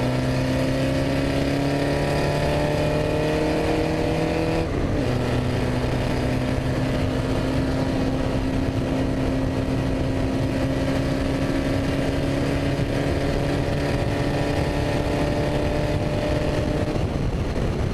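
A racing car engine roars close by, rising in pitch as it accelerates and dropping sharply at a gear change.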